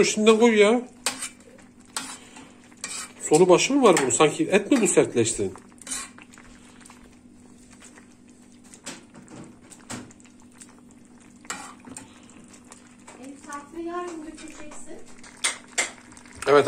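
A metal masher clinks and scrapes against a pot.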